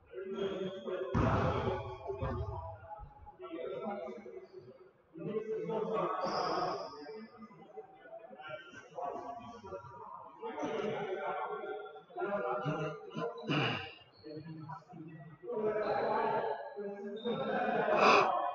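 Young people talk and call out across a large echoing gym.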